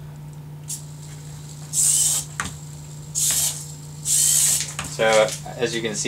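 A small toy robot's electric motor whirs.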